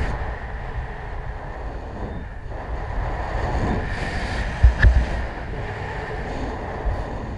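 Wind rushes steadily past, outdoors at height.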